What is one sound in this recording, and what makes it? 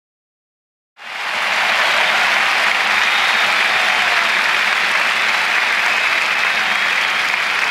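A large crowd cheers and applauds loudly outdoors.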